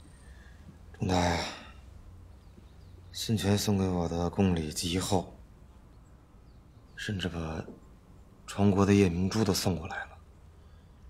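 A man speaks calmly and slowly, close by.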